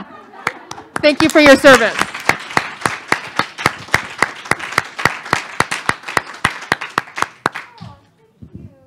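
A small audience claps in a large room.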